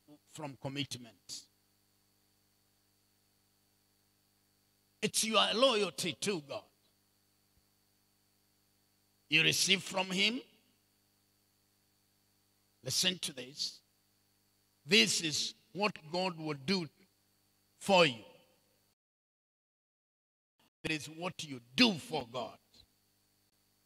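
A man speaks with animation into a microphone, in bursts with long pauses.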